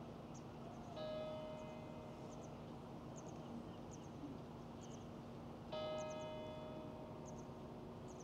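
A brass instrument plays a long held note outdoors.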